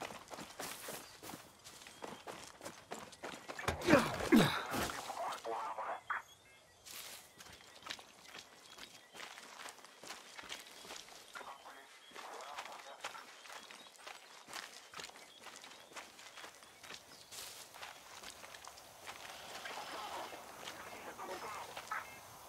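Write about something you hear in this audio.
Footsteps shuffle softly on hard ground.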